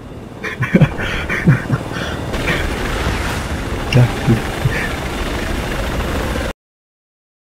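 A helicopter's engine whines steadily.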